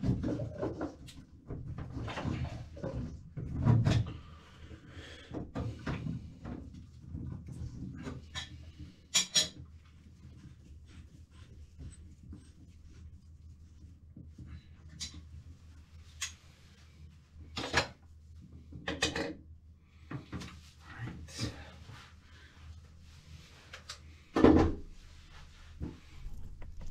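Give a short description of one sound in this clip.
Objects knock and clatter against a porcelain toilet up close.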